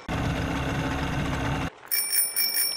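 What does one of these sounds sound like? A motorboat engine hums loudly as a boat speeds over water.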